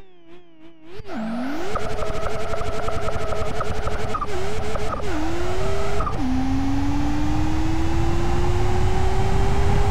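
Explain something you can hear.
A car engine roars and climbs in pitch, dropping briefly at each gear shift.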